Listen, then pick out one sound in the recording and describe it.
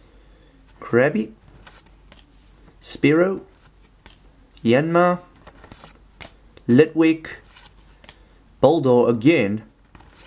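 Trading cards slide and rustle softly in hands.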